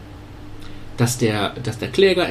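A man speaks calmly into a nearby microphone.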